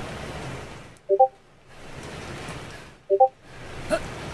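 A short electronic chime sounds twice.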